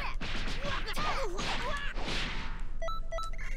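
Rapid punches land with sharp, crackling impacts.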